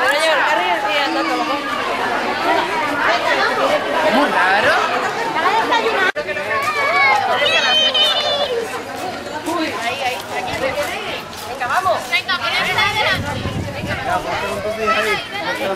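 A crowd of adults and young children chatter outdoors.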